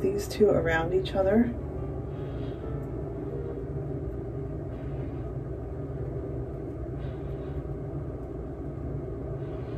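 Hair rustles softly as hands handle it.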